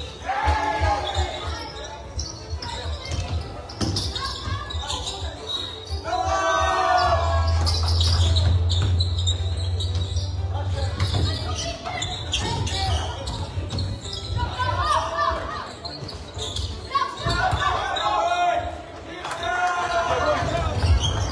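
Young men shout to one another across the court.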